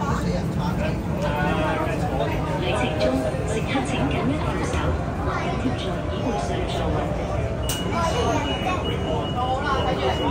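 Passengers chatter nearby in an enclosed space.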